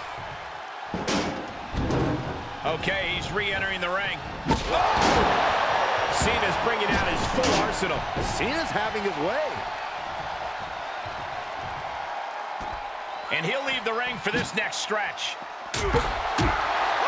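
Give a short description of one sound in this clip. Heavy blows thud and crash loudly.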